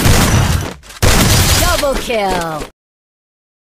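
Gunshots fire in a short burst.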